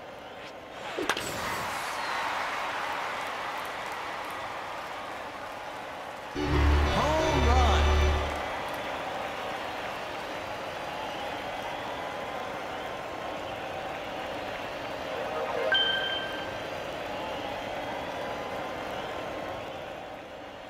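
A stadium crowd cheers loudly.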